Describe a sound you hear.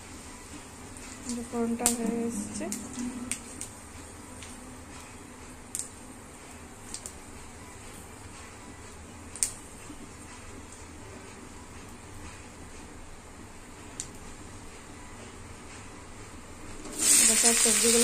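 Hot oil sizzles softly in a pan.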